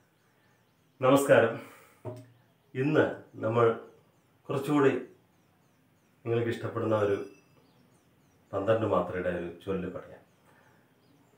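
A man speaks calmly and clearly into a close microphone, in short phrases.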